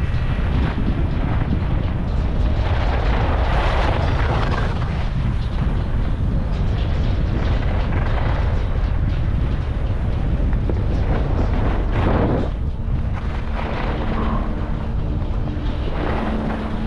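Wind rushes loudly past a skier moving fast downhill.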